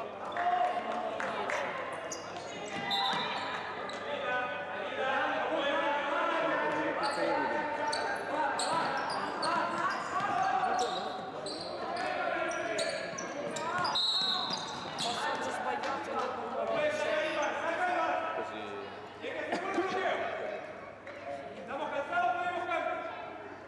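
Young players shout and call to each other in a large echoing hall.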